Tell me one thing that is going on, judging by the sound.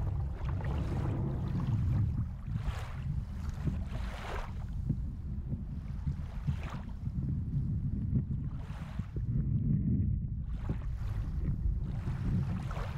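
Water rumbles and swirls steadily, heard from underwater.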